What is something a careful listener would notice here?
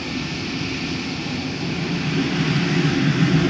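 A jet engine roars louder as it throttles up.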